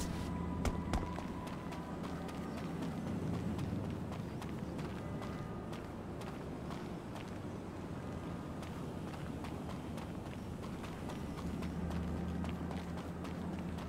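Footsteps crunch quickly on gravel.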